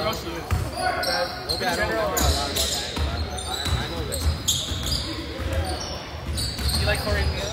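Spectators chatter in a large echoing gym.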